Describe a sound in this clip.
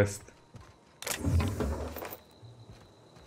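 A metal container clanks open.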